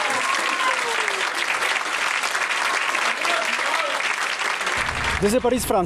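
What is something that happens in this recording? An audience applauds steadily in a large room.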